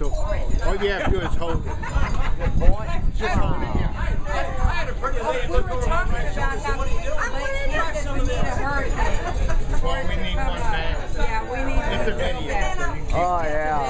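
An elderly man talks cheerfully close by.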